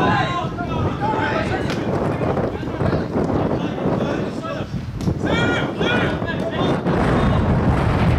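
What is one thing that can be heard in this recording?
Young men shout to each other across an open field.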